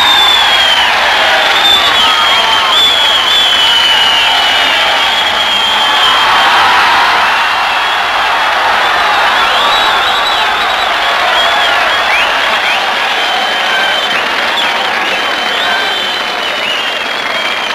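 A large crowd cheers and screams with excitement.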